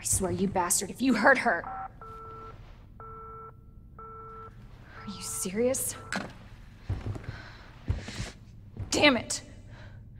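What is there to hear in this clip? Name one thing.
A young woman speaks tensely and angrily, close by.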